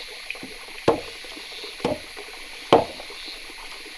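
Wooden knocks sound three times as bamboo slats are tapped into place.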